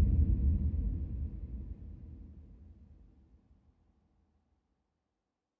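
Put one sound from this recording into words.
Water surges and splashes close by, then fades away.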